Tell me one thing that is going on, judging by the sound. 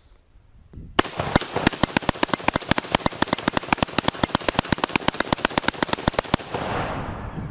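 A rifle fires rapidly in a long burst outdoors.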